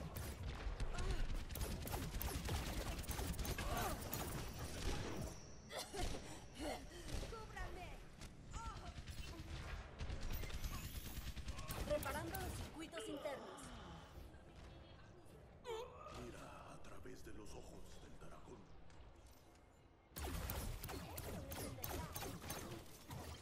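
A video game energy beam weapon fires with a crackling hum.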